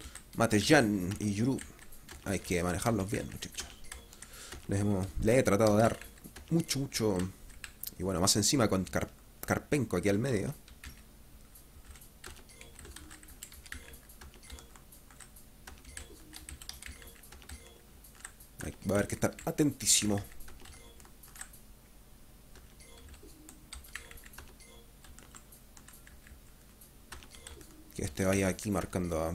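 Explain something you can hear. Short soft electronic blips sound as menu choices are made.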